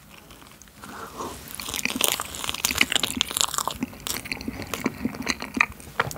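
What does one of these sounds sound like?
A young man chews soft food with wet, smacking sounds close to a microphone.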